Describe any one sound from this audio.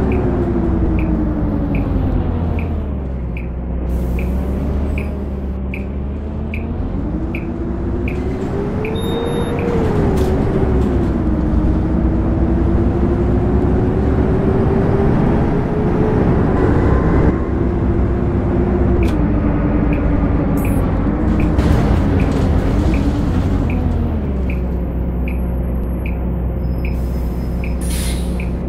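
A bus engine hums and its pitch rises and falls as the bus speeds up and slows down.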